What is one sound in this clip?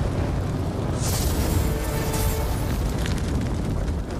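An explosion booms with a loud rushing blast.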